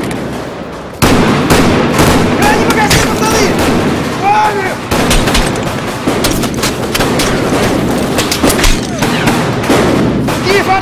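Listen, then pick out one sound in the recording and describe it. Rifles fire in rapid bursts, echoing off hard walls.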